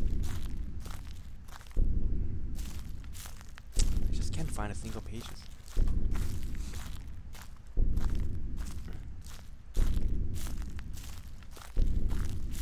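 Footsteps crunch over grass and dry leaves.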